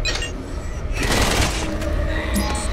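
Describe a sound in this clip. A heavy metal door slides open with a scraping rumble.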